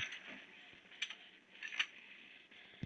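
A gun's magazine clicks as it is reloaded.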